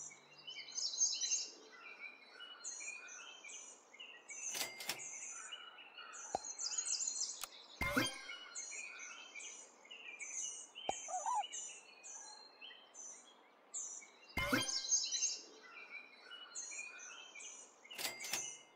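Light, bouncy game music plays throughout.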